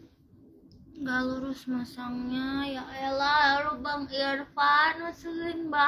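A young woman speaks close to the microphone, with animation.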